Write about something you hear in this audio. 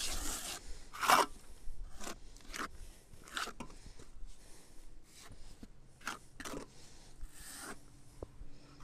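A metal trowel clinks and taps against concrete.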